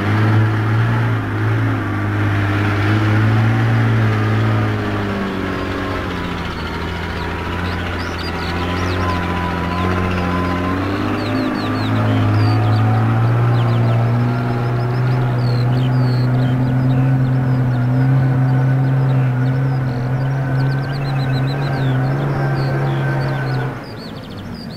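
An old bus engine chugs and hums steadily.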